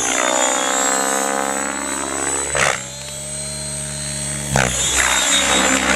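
A model aircraft engine whines loudly overhead, rising and falling in pitch as it passes.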